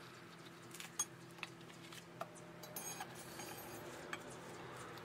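Metal rods clink and scrape against concrete blocks.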